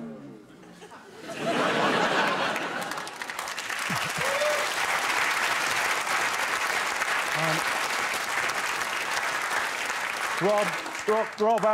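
A studio audience laughs loudly and applauds.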